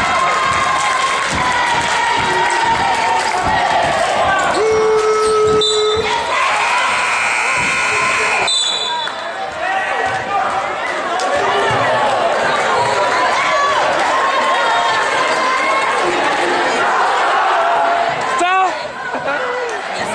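A crowd cheers and shouts in a large echoing gym.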